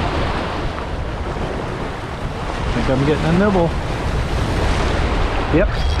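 Waves splash against rocks close by.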